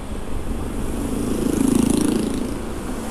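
A small truck engine rumbles as it drives by.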